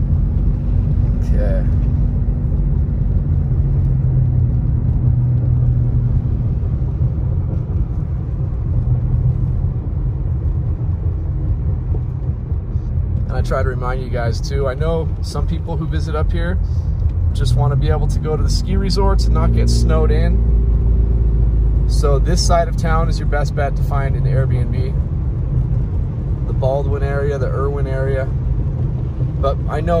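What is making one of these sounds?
A car engine hums and tyres rumble steadily on a wet road.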